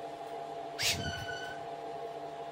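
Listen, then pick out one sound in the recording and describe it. A baby bird gives a short, high chirp.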